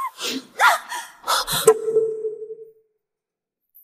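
A young woman cries out in alarm.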